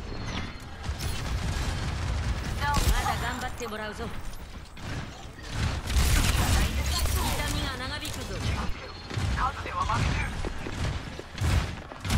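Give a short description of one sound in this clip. A rifle fires repeated shots.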